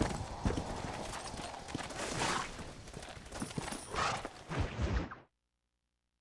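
Horse hooves clop steadily on dry ground.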